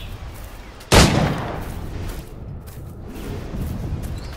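A loud whoosh bursts and rushes past.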